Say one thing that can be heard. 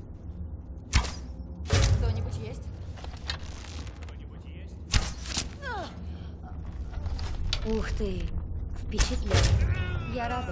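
A bow string twangs as arrows are loosed.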